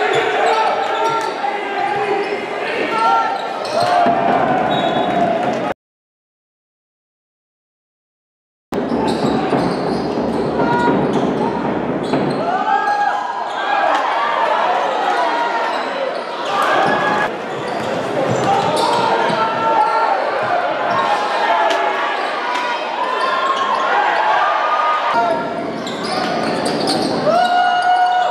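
Basketball shoes squeak on a hardwood court in a large echoing arena.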